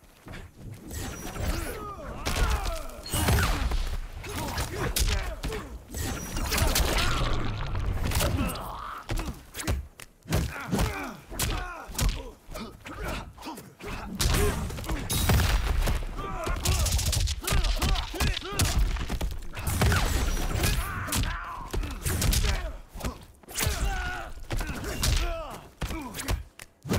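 Punches and kicks land with heavy, rapid thuds.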